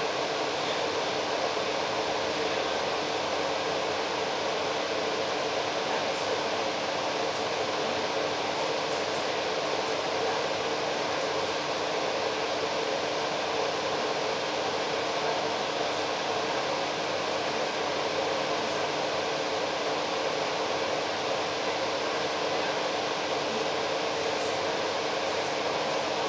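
A bus engine hums steadily nearby.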